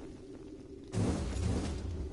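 A magical blast bursts with a rushing whoosh.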